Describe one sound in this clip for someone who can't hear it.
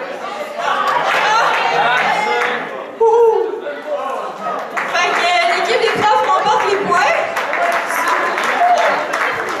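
A small group of men clap their hands.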